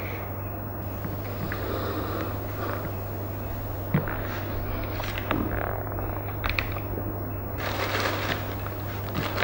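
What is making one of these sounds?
A young man sobs and sniffles quietly.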